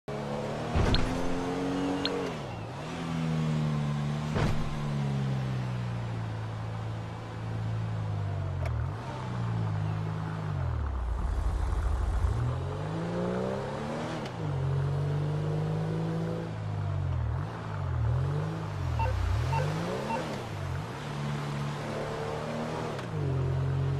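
A sports car engine revs up and down as it shifts through the gears.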